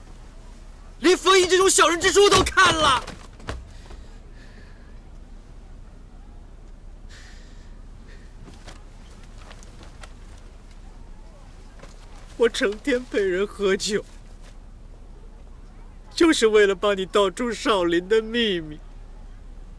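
A young man speaks in a choked, tearful voice.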